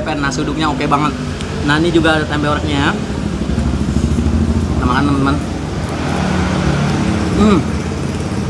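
A spoon scrapes against a plate.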